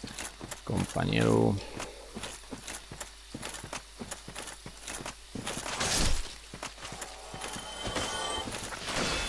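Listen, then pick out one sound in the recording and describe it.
Armoured footsteps clank steadily on the ground.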